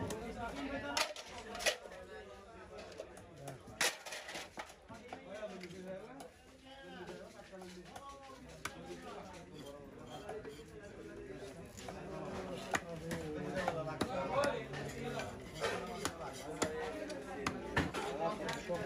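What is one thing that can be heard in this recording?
A knife blade taps sharply against a wooden block.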